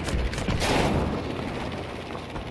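Flak shells burst in loud dull booms.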